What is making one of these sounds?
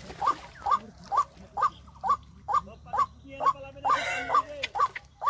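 Water splashes and sloshes around feet wading at the edge of a pond.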